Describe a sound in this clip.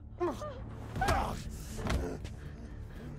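A body thuds heavily onto a metal floor.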